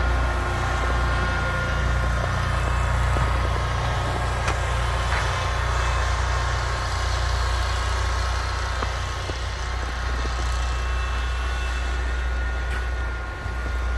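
A snowblower engine drones steadily nearby.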